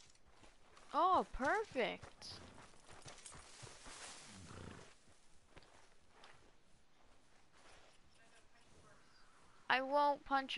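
A horse whinnies loudly.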